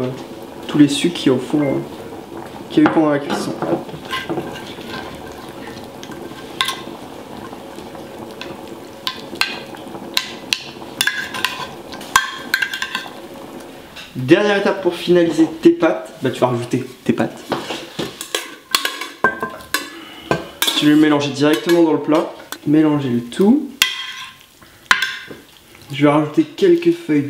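A metal spoon scrapes and taps in a baking dish.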